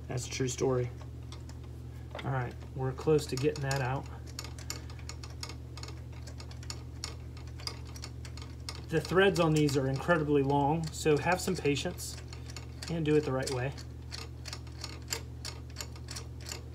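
Small plastic parts click and rattle under handling.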